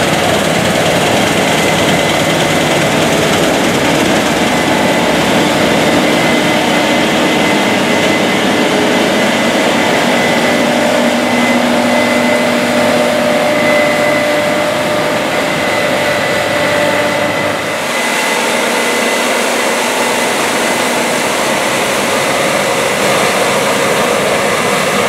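Crop rustles and crunches as a combine harvester cuts through it.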